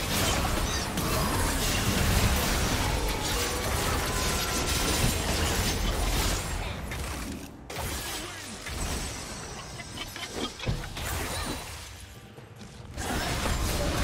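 Magic spells crackle and burst in a hectic fight.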